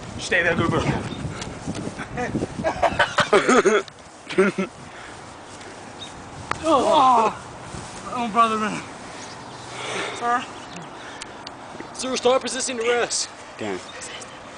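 Young boys shout and laugh excitedly close by outdoors.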